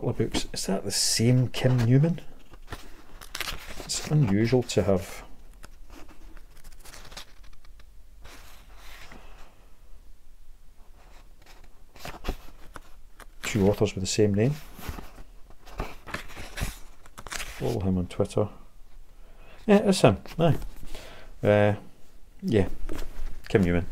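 A middle-aged man talks calmly and close to the microphone, with pauses.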